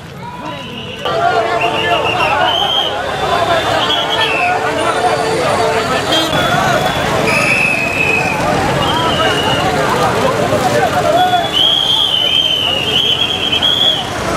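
A large crowd of men shouts and talks loudly outdoors.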